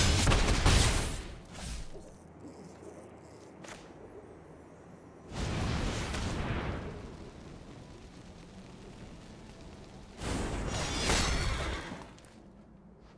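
Fantasy card game sound effects whoosh and boom in short bursts.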